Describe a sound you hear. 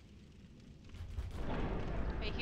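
A heavy door rumbles open.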